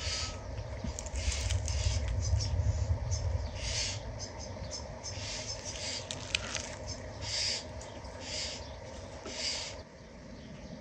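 A knife scrapes and peels the papery skin off an onion.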